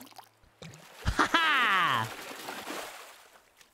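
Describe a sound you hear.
Water splashes as a fish is hooked.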